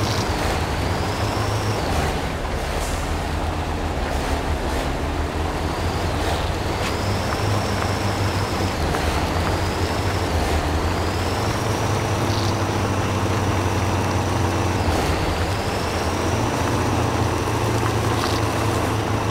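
A heavy truck engine rumbles steadily at low revs.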